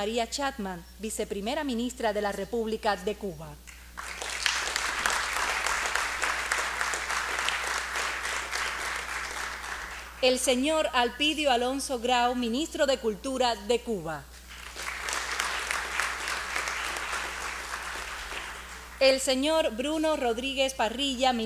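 A young woman speaks calmly into a microphone in a large hall.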